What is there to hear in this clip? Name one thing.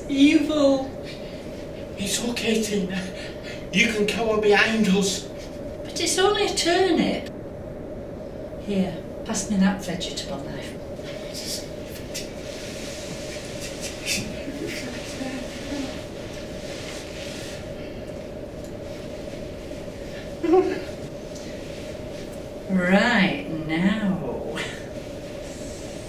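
An older woman speaks dramatically, close by.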